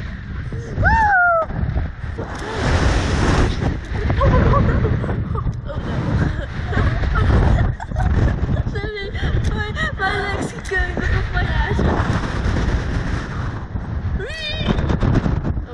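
A young woman screams and laughs close by.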